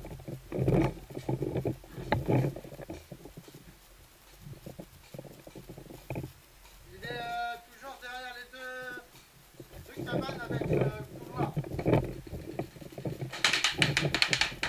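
A gun barrel bumps and scrapes against wooden boards close by.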